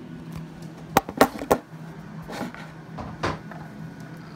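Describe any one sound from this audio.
Plastic parts of a toy bike knock and clatter close by.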